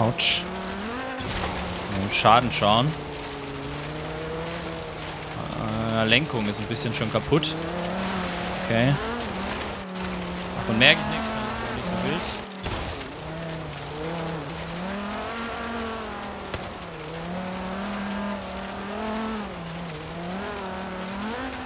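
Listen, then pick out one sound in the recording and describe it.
A car engine roars and revs at high speed.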